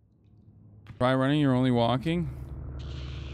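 A short musical alert tone plays.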